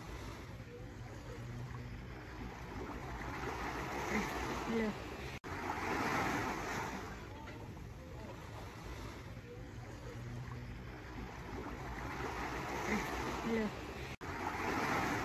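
Small waves wash gently onto a sandy shore in slow, rising and falling surges.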